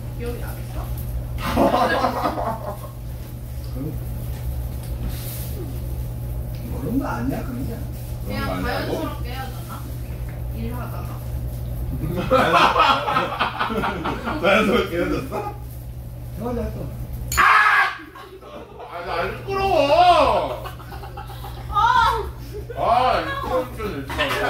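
Young women chat and laugh at a table, heard through a microphone.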